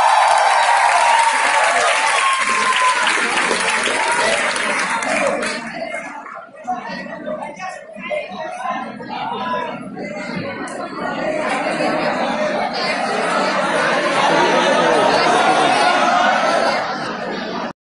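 A large crowd of women and men chatters and cheers loudly in an echoing hall.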